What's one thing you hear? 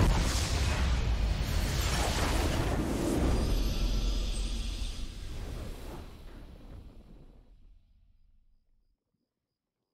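Game music swells in a triumphant fanfare and slowly fades out.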